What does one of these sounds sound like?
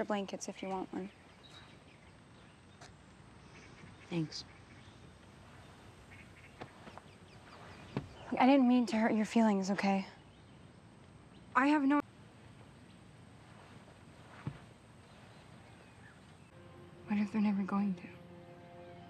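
A young woman speaks quietly, close by.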